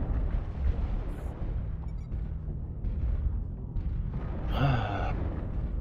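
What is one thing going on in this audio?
A heavy machine rumbles with deep low thuds.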